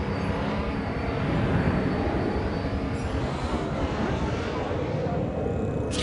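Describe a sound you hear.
A laser beam zaps and hums as it fires down from the sky.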